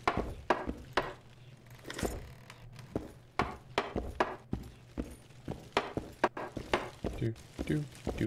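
Footsteps thud on wooden floorboards at a steady walking pace.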